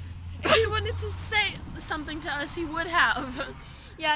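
A teenage girl laughs close to the microphone.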